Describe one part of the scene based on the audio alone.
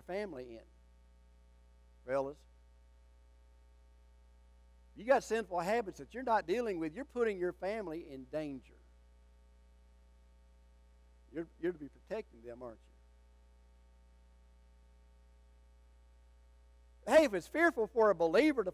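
An elderly man preaches with animation through a microphone, with pauses between phrases.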